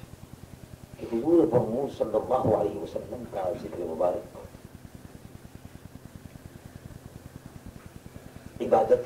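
An elderly man speaks in a measured, reciting voice.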